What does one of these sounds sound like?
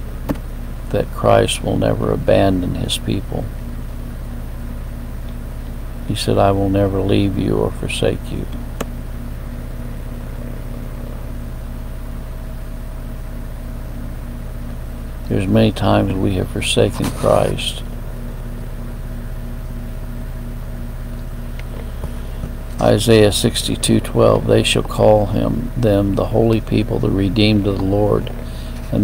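An elderly man speaks slowly and calmly close to the microphone, with long pauses.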